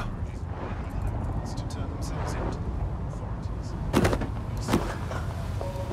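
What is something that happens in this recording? A hard blow lands on a body with a thud.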